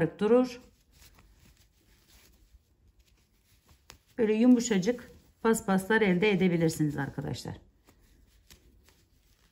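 A crochet hook rubs and clicks softly through yarn.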